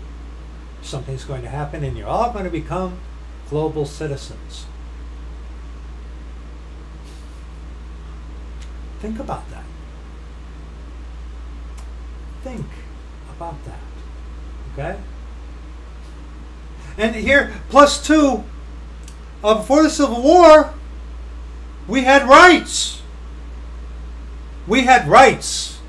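A middle-aged man talks close to a microphone in bursts, calmly at first and then with growing animation.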